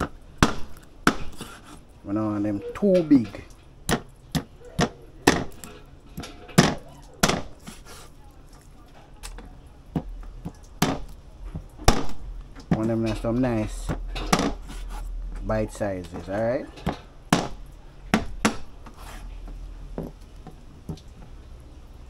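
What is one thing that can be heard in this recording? A knife chops sharply against a plastic cutting board.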